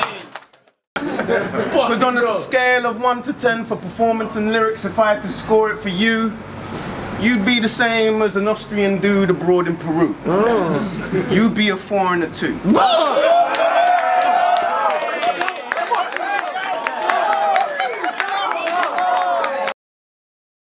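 A young man raps loudly and with force.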